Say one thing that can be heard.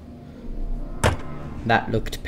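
A wooden crate lid thumps shut.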